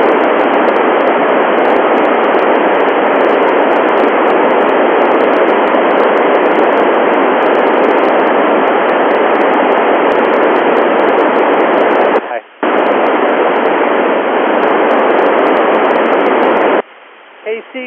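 Radio static hisses steadily from a receiver's loudspeaker, then cuts off near the end.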